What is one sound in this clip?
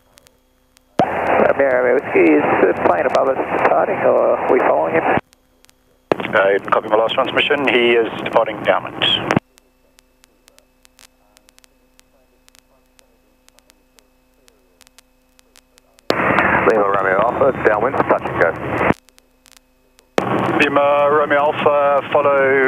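A young man talks calmly through a headset radio.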